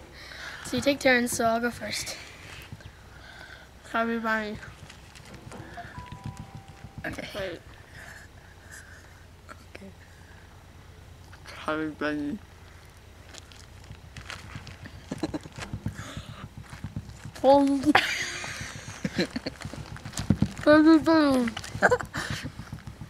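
A second boy talks and laughs up close.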